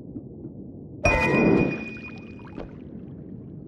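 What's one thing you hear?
A bright game chime rings out.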